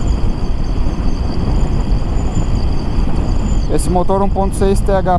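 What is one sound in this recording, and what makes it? Wind roars and buffets loudly against a moving motorcycle.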